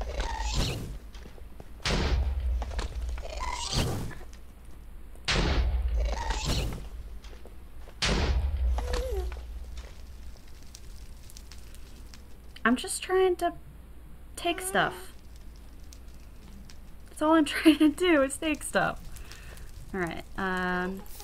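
Fire crackles nearby.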